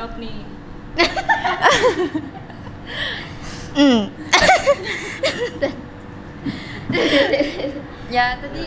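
Young women answer into a microphone, talking and laughing.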